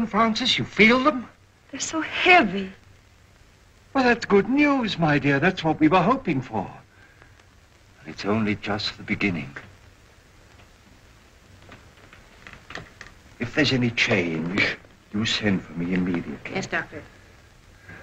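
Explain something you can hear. An elderly man speaks softly and warmly, close by.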